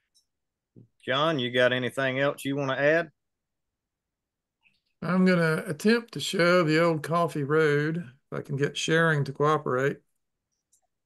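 A man talks calmly through an online call.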